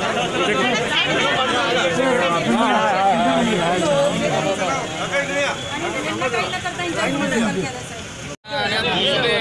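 A crowd of men and women talk over one another up close.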